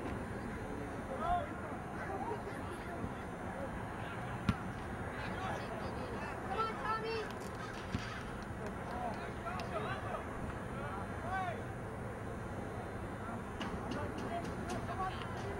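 A soccer ball is kicked with a dull thud.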